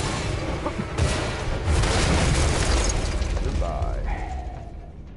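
A shell explodes with a heavy blast.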